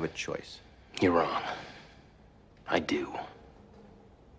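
A second man answers quietly nearby.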